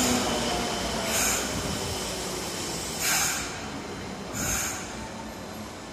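Train doors hiss open.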